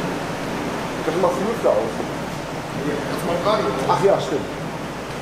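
A man speaks close by in a calm voice.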